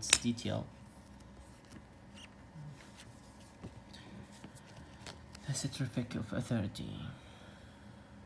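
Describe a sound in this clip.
A stiff card scrapes and taps against a case as it is handled.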